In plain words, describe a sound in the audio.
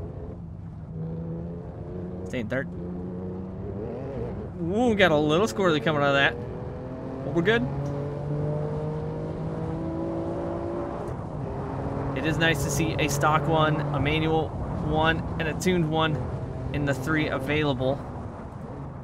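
A car engine hums steadily and shifts pitch as it accelerates and slows.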